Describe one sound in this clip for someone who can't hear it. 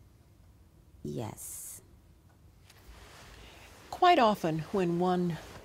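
An older woman speaks calmly and close to a microphone, pausing between phrases.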